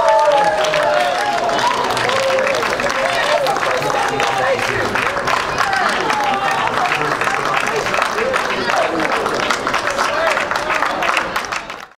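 A crowd claps and applauds in a large echoing hall.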